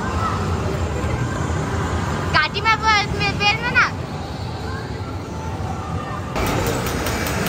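Arcade machines chime and hum in a noisy hall.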